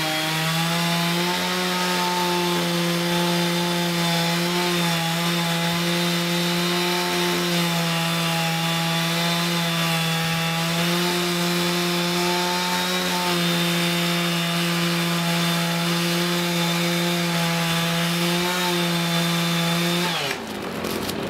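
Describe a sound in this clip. A chainsaw roars steadily, cutting into a tree trunk.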